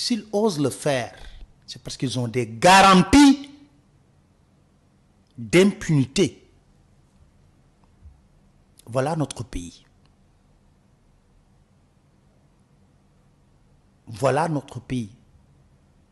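A man speaks with animation into a microphone, in short bursts with long pauses.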